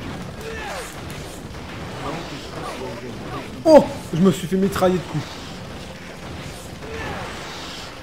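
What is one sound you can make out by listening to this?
Sword strikes and magic blasts hit creatures in quick bursts.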